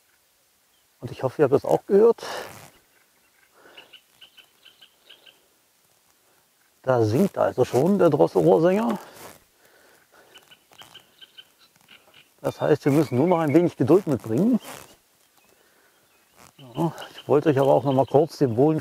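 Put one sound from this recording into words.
A middle-aged man speaks calmly in short bursts close to the microphone, outdoors.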